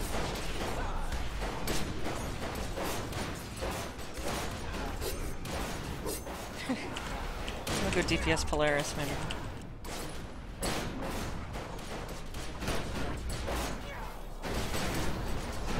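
Weapons fire in rapid bursts.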